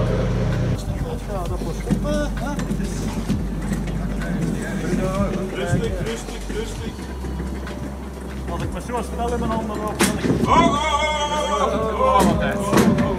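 Several men talk calmly nearby, outdoors.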